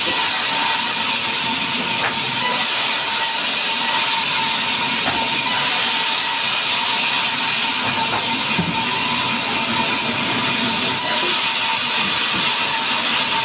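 A saw motor hums steadily.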